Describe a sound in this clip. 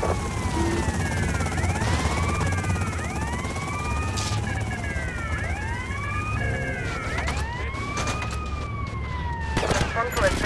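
Police sirens wail close by, rising and falling.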